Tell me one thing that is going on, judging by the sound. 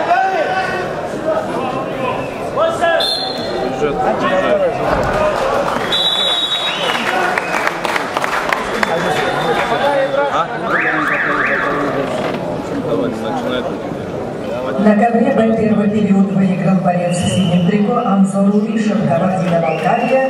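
A crowd of spectators shouts and cheers in an echoing hall.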